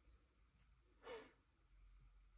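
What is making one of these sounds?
Stiff paper rustles and slides softly.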